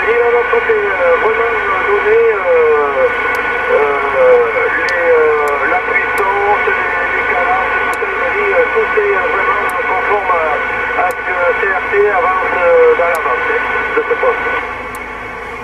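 Voices talk over a CB radio loudspeaker, thin and band-limited.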